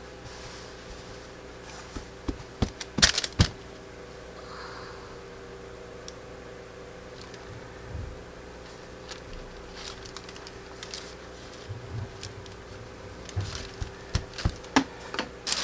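Paper rustles and crinkles as hands smooth it flat.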